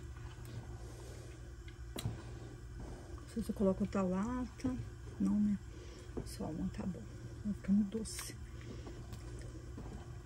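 A wooden spoon stirs and scrapes through thick batter in a metal pot.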